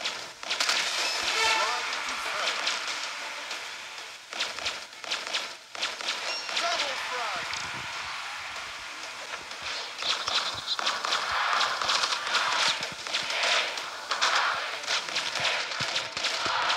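Video game gunfire blasts in rapid bursts.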